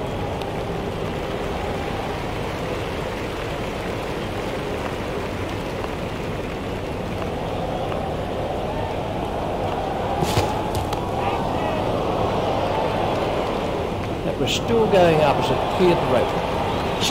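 A large crowd murmurs steadily.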